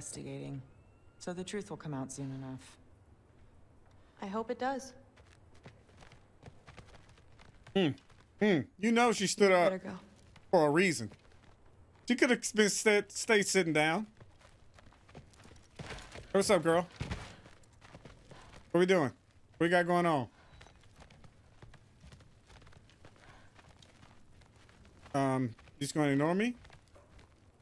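A man speaks into a close microphone.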